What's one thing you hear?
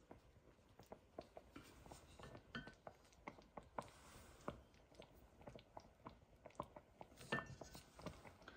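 A spoon scrapes against a glass bowl.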